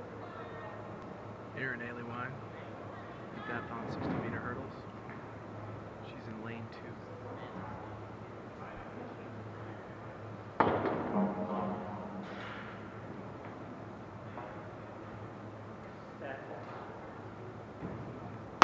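People talk quietly in a large echoing hall.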